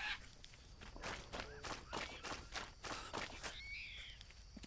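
Footsteps rustle through dry leaves and undergrowth.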